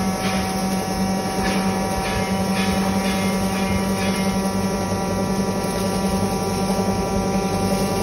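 Grain rattles through a mill as it is poured in.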